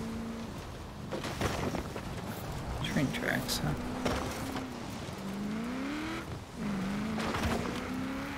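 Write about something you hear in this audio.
Branches and bushes crash against a truck.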